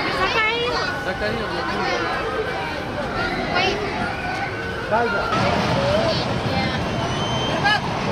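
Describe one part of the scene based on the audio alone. Young children chatter and squeal excitedly nearby.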